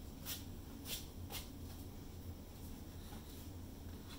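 A board knocks lightly against a frame as it is lifted.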